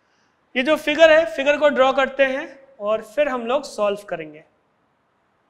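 A man speaks calmly into a close microphone, explaining.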